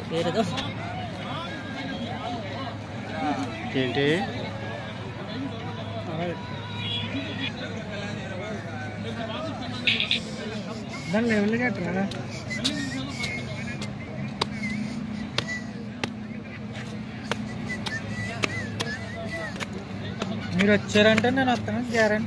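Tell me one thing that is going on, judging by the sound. A crowd of people chatters in the open air.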